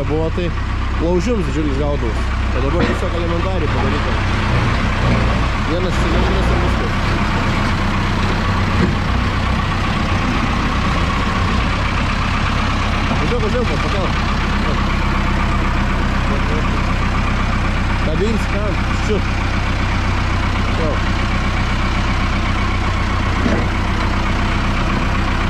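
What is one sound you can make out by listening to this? A tractor engine runs with a steady, low diesel rumble close by.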